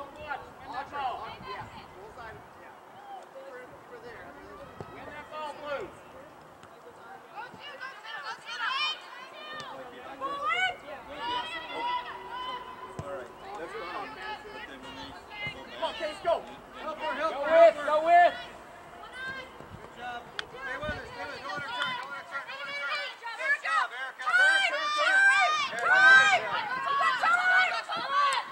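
Young women shout and call out to each other outdoors across an open field.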